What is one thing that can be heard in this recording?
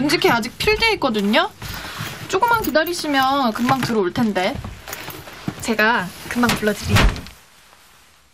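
A young woman speaks loudly and emotionally close by.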